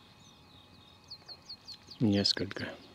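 A small bird gives a quick run of short, high chirps.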